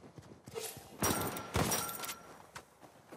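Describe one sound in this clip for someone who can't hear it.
A pistol fires gunshots.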